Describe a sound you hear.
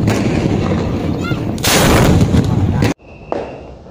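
A firework fountain hisses and crackles close by.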